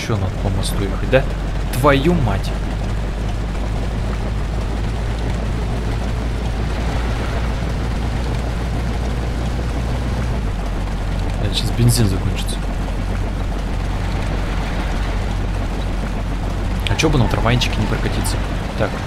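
A vintage car engine hums as the car drives along a street.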